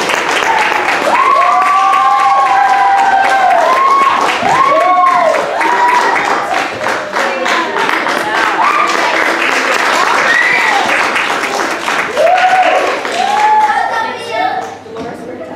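A group of children sing loudly together in an echoing hall.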